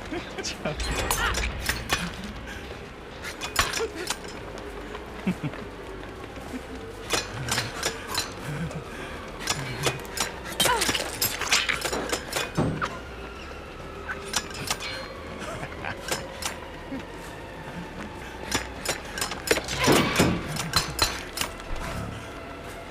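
Quick footsteps run over rough ground.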